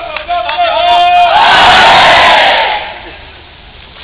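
A large outdoor crowd applauds and cheers.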